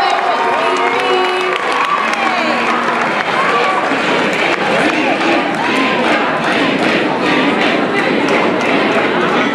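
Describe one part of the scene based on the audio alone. A large crowd of children cheers and shouts loudly in an echoing hall.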